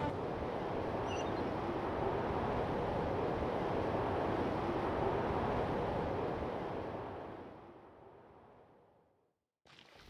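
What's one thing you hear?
Wind rushes steadily past, then fades away.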